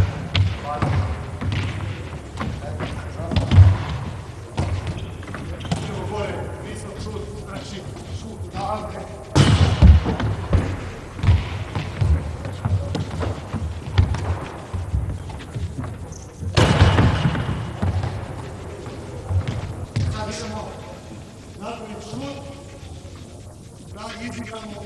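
Sneakers squeak and patter on a hard floor.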